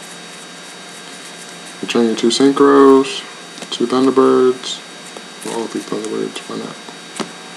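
Playing cards are laid softly onto a table.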